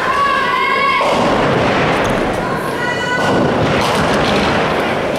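A bowling ball rolls down a wooden lane with a steady rumble.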